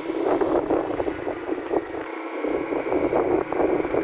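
A motorcycle engine hums while riding along a road.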